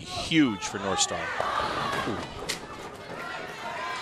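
Bowling pins crash and clatter.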